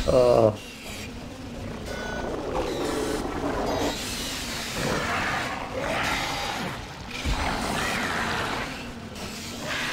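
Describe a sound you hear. A weapon fires short, sharp energy shots.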